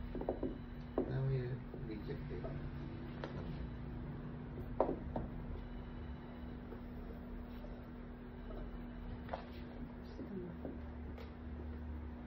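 Small clinks sound against a metal bowl.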